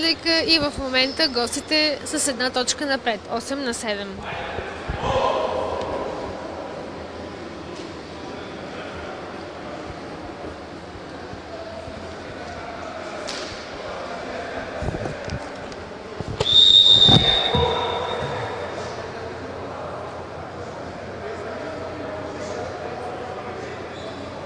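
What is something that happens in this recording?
Voices murmur and echo in a large hall.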